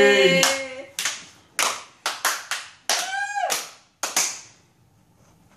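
A few people clap their hands.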